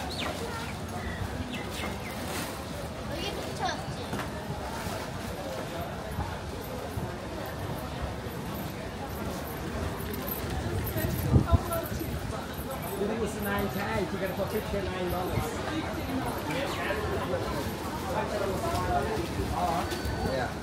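A crowd chatters outdoors in a busy open space.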